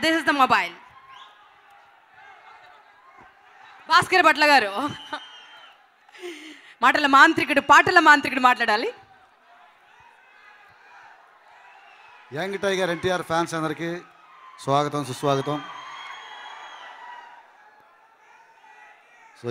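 A crowd cheers and whistles in a large hall.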